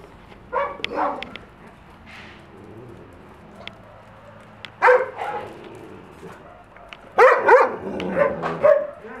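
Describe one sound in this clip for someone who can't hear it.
Dogs bark and yelp close by.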